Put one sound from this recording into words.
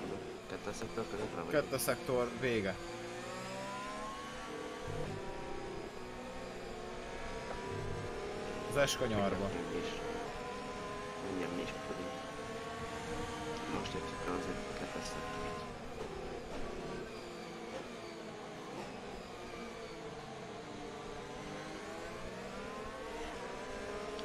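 A racing car engine whines steadily, rising and falling in pitch as it changes gear.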